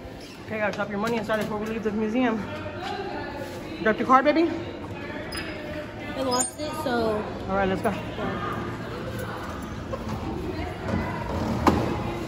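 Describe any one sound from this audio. A glass door is pushed open with a thud.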